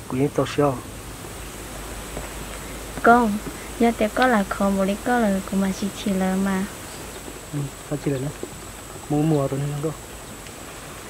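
A young man talks softly up close.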